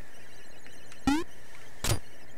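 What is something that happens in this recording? A short electronic sound effect sweeps quickly upward.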